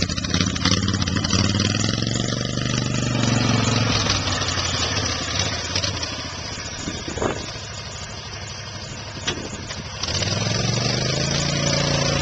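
A small cart engine hums and revs as the cart drives off.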